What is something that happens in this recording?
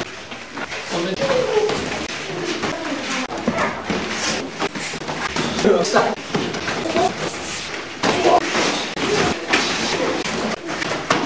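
Young men call out and talk.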